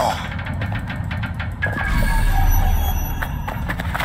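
A body lands hard on the ground with a thud.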